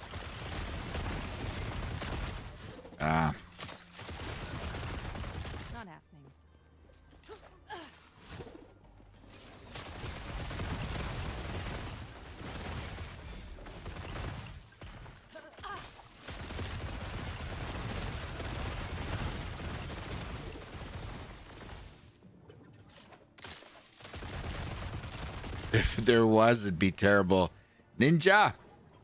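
Magic blasts and crackling effects of a video game burst and rumble.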